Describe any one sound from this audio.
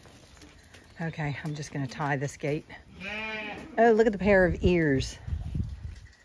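Sheep bleat loudly nearby.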